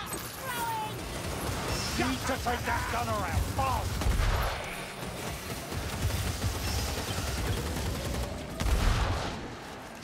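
Guns fire with heavy booming thumps.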